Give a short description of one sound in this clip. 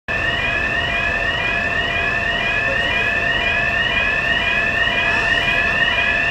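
A fire engine siren wails in rapid repeating rising sweeps close by.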